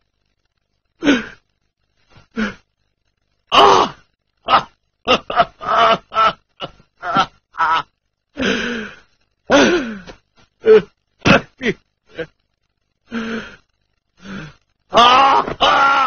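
A man speaks loudly with animation in short bursts.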